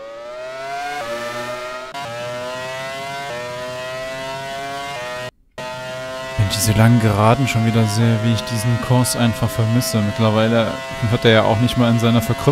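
A racing car engine screams at high speed, shifting gears.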